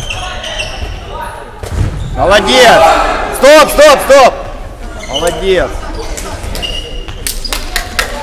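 Sneakers squeak on a gym floor.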